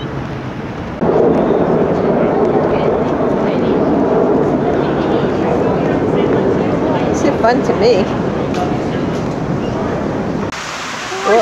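A crowd of adults chatters nearby at outdoor tables.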